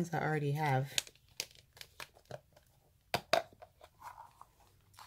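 Long fingernails tap and click against a plastic case.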